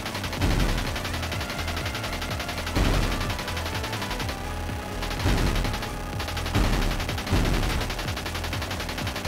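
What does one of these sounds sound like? A video game car engine hums steadily.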